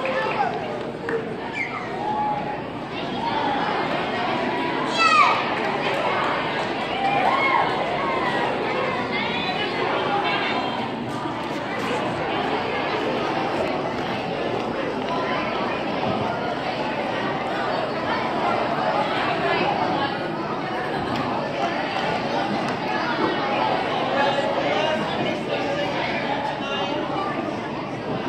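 A crowd of children and adults chatters and calls out loudly in a large echoing hall.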